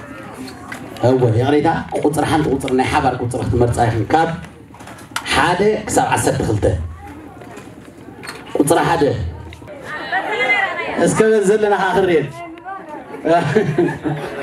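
A young man speaks with animation into a microphone, heard through a loudspeaker in a room.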